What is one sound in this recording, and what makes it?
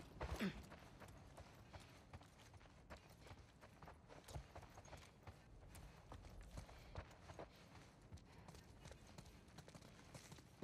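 Footsteps thud softly on a carpeted floor.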